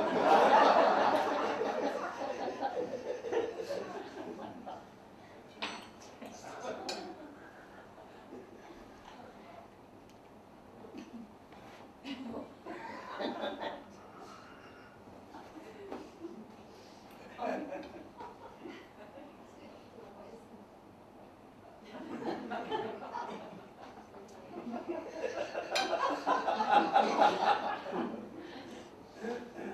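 An elderly woman speaks.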